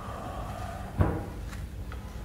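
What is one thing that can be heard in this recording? A ball thuds once.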